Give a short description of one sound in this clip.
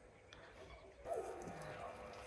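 Soft bread rips and tears apart.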